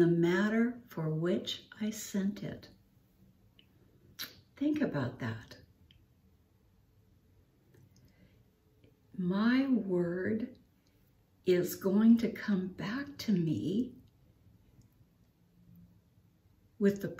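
An elderly woman speaks calmly and warmly, close to a microphone, with pauses.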